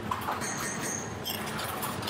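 A spoon clinks in a small pan.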